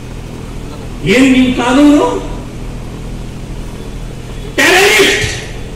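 A middle-aged man speaks forcefully through a loudspeaker outdoors.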